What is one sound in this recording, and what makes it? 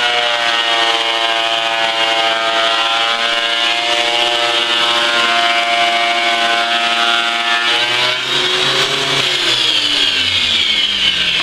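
A woodworking machine whines loudly and steadily as it planes boards, its pitch sliding down near the end.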